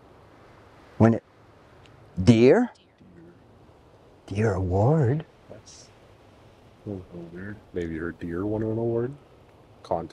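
An older man speaks in a low voice, close by.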